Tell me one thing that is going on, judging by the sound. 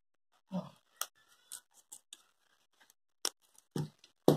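Scissors snip through thin plastic.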